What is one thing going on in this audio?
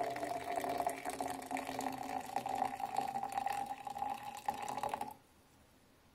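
Hot water pours into a cup, rising in pitch as the cup fills.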